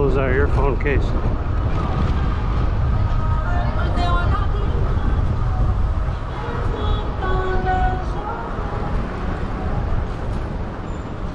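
Wind rumbles loudly against a moving rider outdoors.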